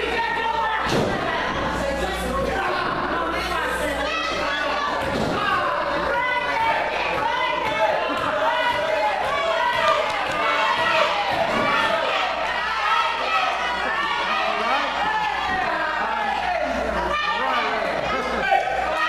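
Wrestlers' bodies thud onto the ring mat.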